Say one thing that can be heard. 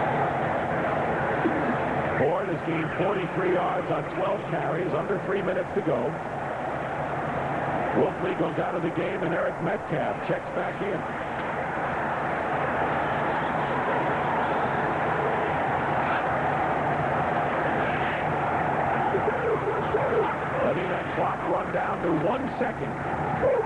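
A large crowd cheers and roars steadily outdoors.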